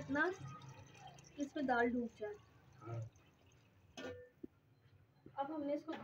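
Water pours into a metal pot and splashes.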